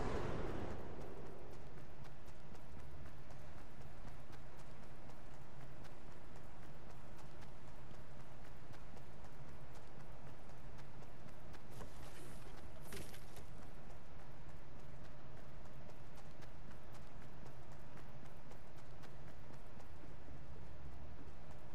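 Footsteps run quickly on grass.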